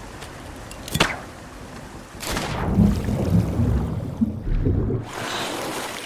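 Water splashes loudly as a body plunges in.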